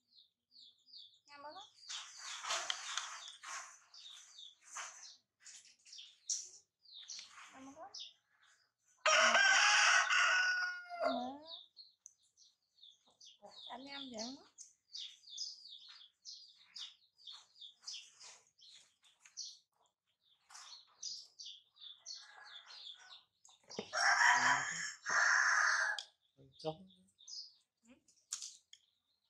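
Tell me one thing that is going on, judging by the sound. A baby monkey squeaks and whimpers repeatedly.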